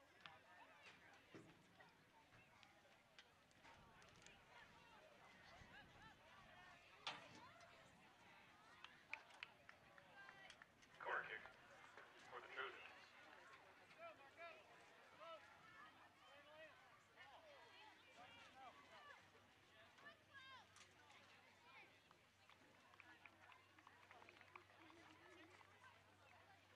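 Young women call out and shout to each other across an open field.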